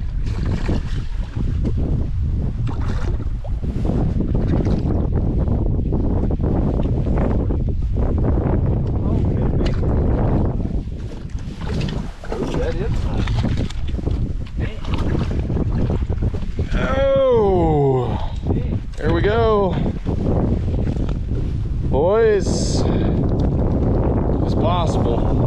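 Wind buffets loudly, outdoors on open water.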